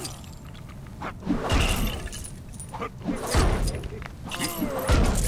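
Plastic pieces clatter and scatter as figures break apart.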